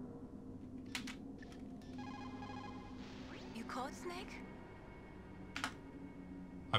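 Electronic radio beeps and chirps ring out briefly.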